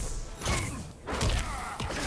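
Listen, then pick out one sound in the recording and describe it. Fire bursts with a roaring whoosh.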